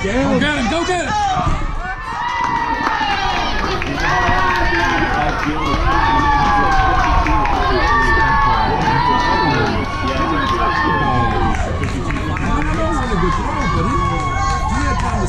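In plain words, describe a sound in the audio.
A crowd of children cheers and shouts loudly outdoors.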